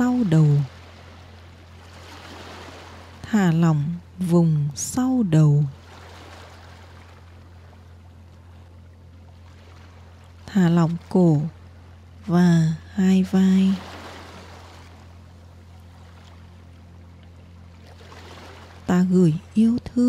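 Small waves gently lap against a pebbly shore.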